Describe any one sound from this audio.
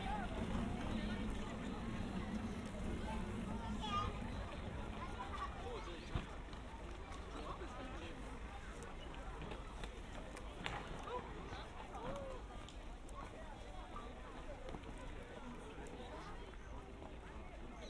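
A crowd of men and women chatter softly outdoors.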